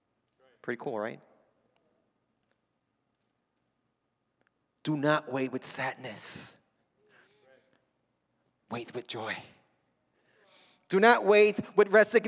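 A young man speaks with animation through a microphone in a large echoing hall, pausing between phrases.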